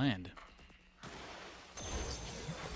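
Magic energy bolts whoosh and crackle.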